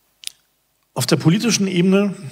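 A man speaks into a microphone, amplified over loudspeakers.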